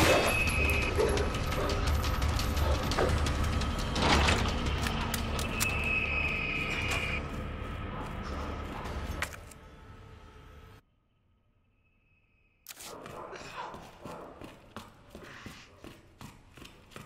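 Footsteps thud on a hard floor at a steady walking pace.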